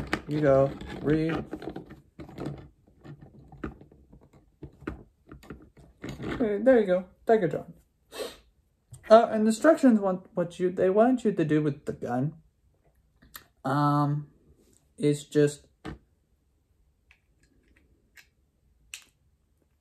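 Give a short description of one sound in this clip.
Plastic toy parts click as they are handled.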